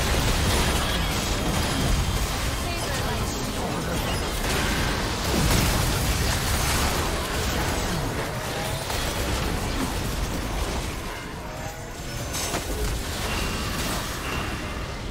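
Game spell effects crackle and blast in a busy fight.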